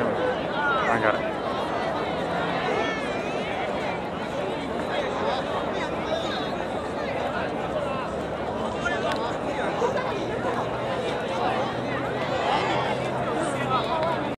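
A large crowd murmurs and chatters outdoors in an open space.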